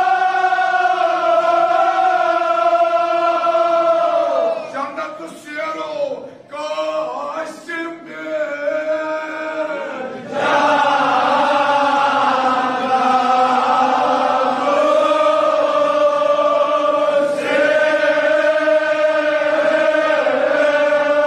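A crowd of men chants a mournful lament loudly in unison.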